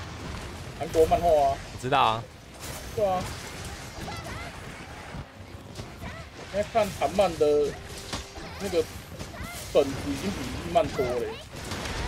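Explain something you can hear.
Weapon blows land on a huge beast with heavy impacts.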